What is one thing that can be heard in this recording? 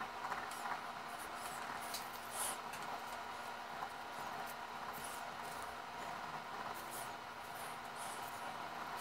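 A small knife scrapes and shaves wood in short strokes.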